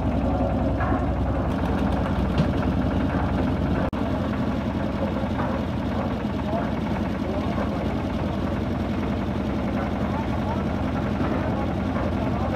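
A concrete mixer's engine rumbles steadily close by.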